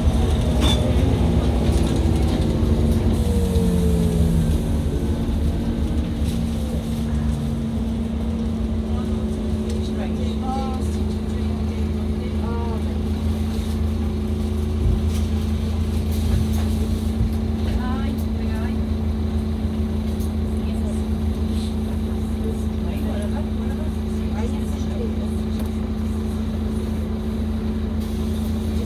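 A bus engine hums steadily with a low drone.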